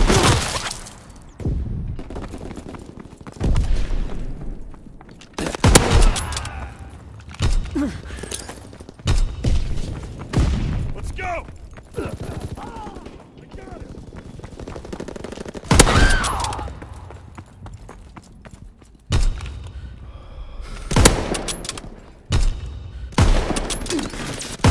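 Rifle shots crack loudly, one at a time, with a short echo.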